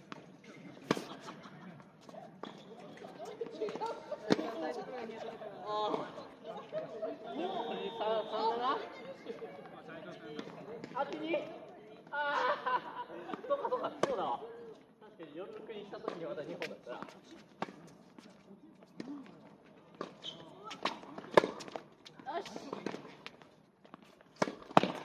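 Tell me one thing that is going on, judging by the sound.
A tennis ball is struck with a racket with sharp pops, back and forth.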